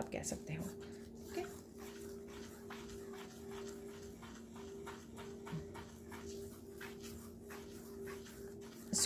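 Fingers softly scrape and swish through fine sand on a plate.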